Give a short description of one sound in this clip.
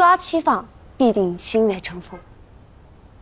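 A second young woman speaks calmly, close by.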